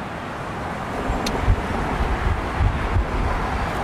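Traffic rumbles past on a nearby road.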